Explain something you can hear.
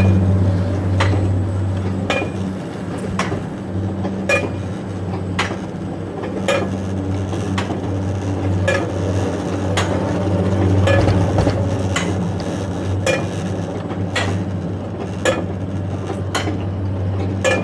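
A chain lift clicks at a steady, regular pace.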